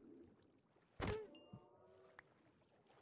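A sea creature cries out as it is struck.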